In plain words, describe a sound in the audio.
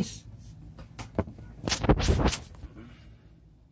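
Fingers brush and tap close against the microphone.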